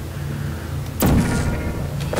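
A sci-fi gun fires with a sharp electric zap.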